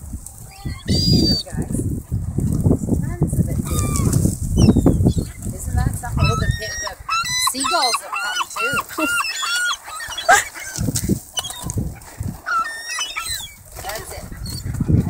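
Gulls cry and squawk nearby.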